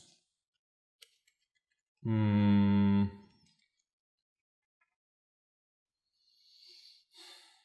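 Game pieces click on a table.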